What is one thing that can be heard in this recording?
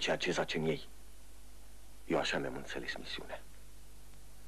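A middle-aged man reads aloud calmly from a book.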